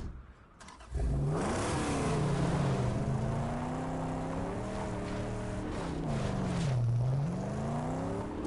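A car engine roars and revs, rising and falling in pitch.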